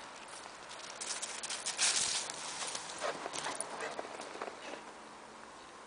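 A dog runs and scampers across dry grass nearby.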